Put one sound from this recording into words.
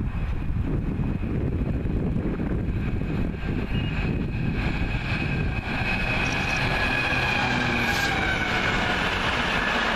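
A diesel locomotive approaches with a deep engine roar.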